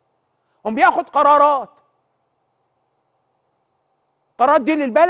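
A middle-aged man speaks firmly and clearly into a close microphone.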